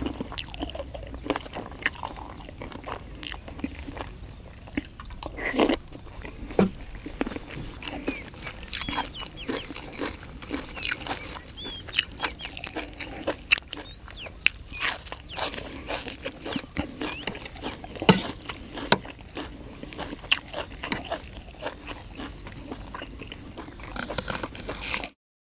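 A man chews and slurps food loudly, close by.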